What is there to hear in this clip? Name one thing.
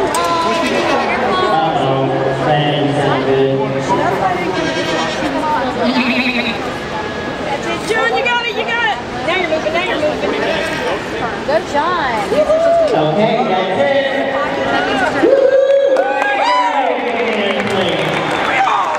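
A crowd of men and women chatters all around in a large echoing hall.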